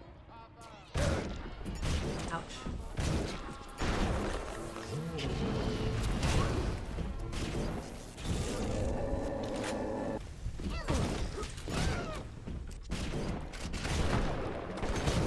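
Gunshots boom in quick bursts.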